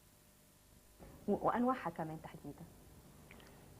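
A woman speaks calmly, close to a microphone.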